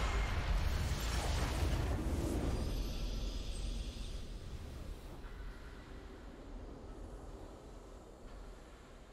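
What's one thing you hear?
A triumphant game fanfare swells and slowly fades.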